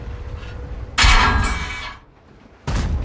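A shell explodes on impact nearby.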